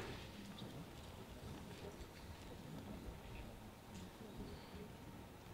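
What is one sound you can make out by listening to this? A man speaks quietly into a microphone.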